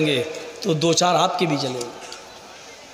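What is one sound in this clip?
A man preaches forcefully into a microphone, his voice amplified over loudspeakers.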